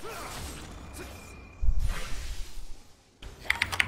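Magic spells whoosh and crackle in short bursts.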